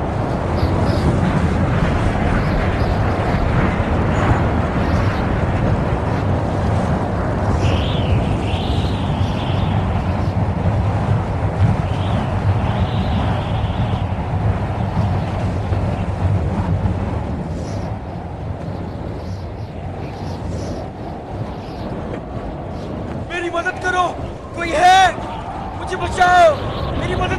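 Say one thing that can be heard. Strong wind roars across open ground.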